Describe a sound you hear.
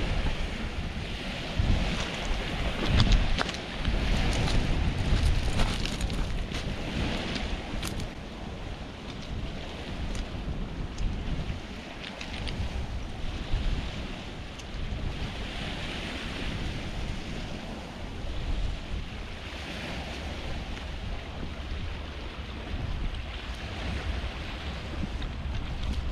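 Wind gusts roughly across an open shore.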